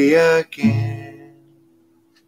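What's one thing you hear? A man sings close by.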